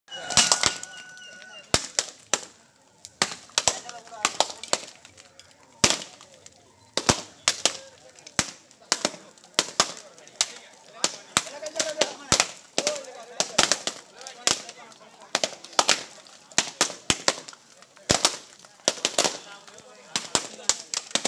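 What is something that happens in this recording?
Coconuts crack and smash one after another on hard ground outdoors.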